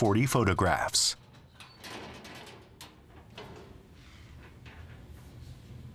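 A metal cabinet door clanks open.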